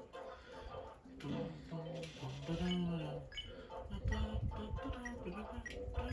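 Short electronic blips sound as menu choices are made.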